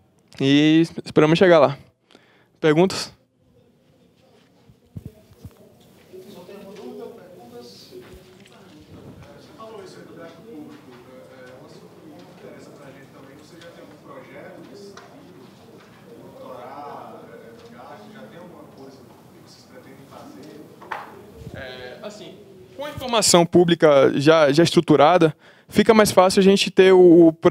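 A young man speaks calmly into a microphone over loudspeakers in a large room.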